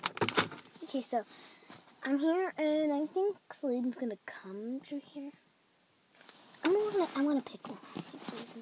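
A young girl talks close by, quietly.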